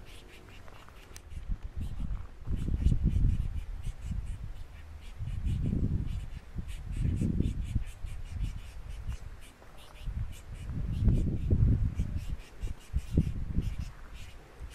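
Small birds chirp and twitter close by.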